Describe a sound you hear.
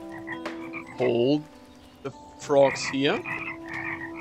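A small cartoon creature chirps and warbles.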